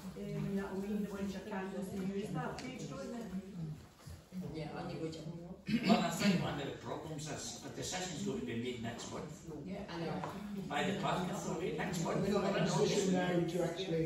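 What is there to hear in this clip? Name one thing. An adult speaks calmly to a group in a room with a slight echo.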